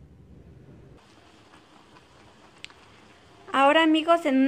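Water bubbles and boils in a pot.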